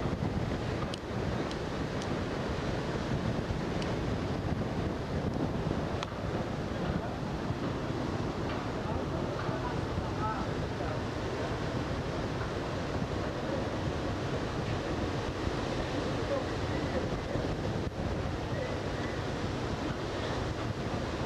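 Water splashes and churns against a moving boat's hull.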